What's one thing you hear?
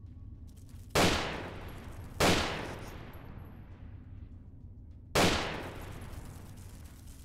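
A pistol fires three loud shots that echo through an enclosed space.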